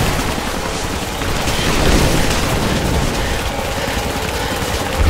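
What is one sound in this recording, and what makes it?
A snowstorm wind roars steadily.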